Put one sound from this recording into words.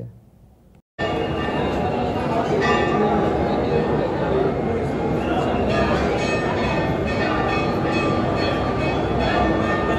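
A large crowd chatters and calls out loudly in an echoing space.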